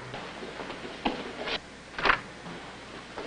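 A door latch clicks as a door opens.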